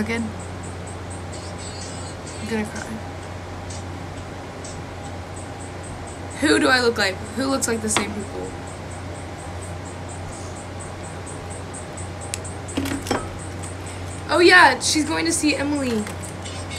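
A young woman talks casually, close to a phone microphone.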